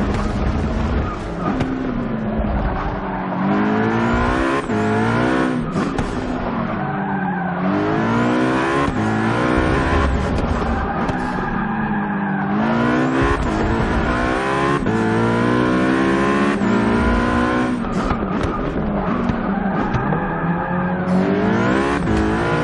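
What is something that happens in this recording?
A racing car engine roars loudly, climbing in pitch and dropping back with each gear change.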